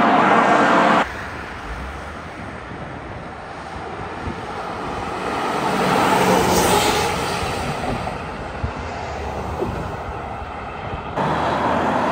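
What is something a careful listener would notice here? A fire engine rumbles by on a highway.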